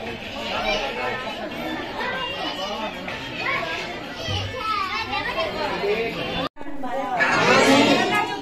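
Men, women and children chatter together close by.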